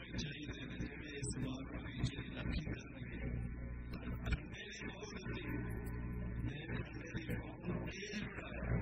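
An elderly man speaks calmly and steadily into a microphone.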